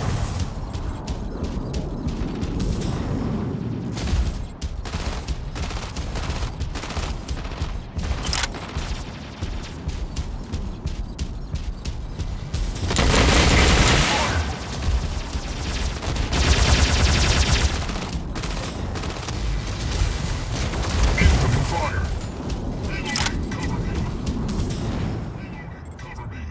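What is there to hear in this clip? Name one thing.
A heavy robot's engine hums steadily.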